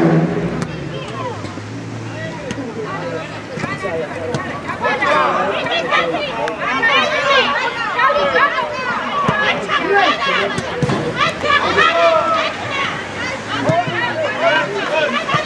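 Children shout and call out across an outdoor football pitch.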